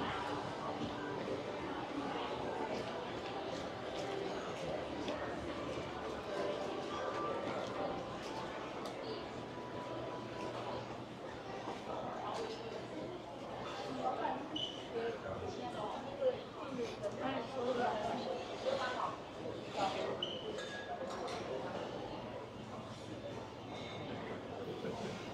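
A crowd murmurs and chatters in the background throughout.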